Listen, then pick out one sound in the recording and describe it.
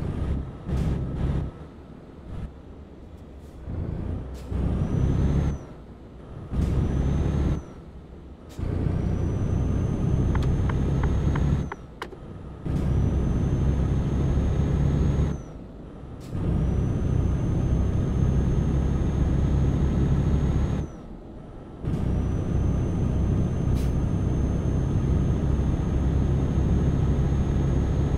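A truck's diesel engine roars and revs up, dropping briefly with each gear change.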